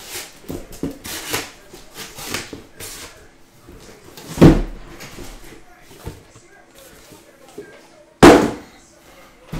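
Cardboard boxes knock and slide on a table.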